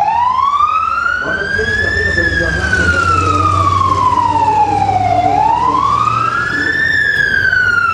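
An ambulance siren wails up and down close by.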